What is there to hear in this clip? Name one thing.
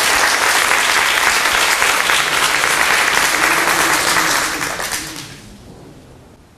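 A crowd applauds in a large room, then the clapping fades.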